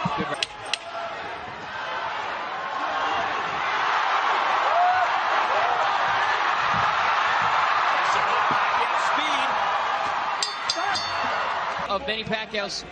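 A large crowd roars and cheers in a big arena.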